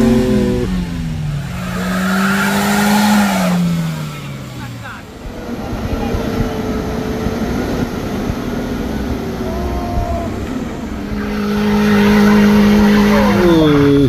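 A car engine revs hard and strains.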